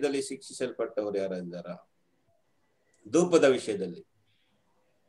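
A man speaks calmly over an online call.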